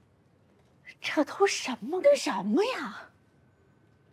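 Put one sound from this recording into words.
A young woman speaks with exasperation, close by.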